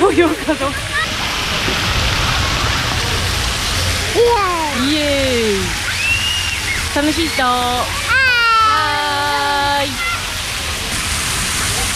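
Water from fountains splashes and hisses nearby.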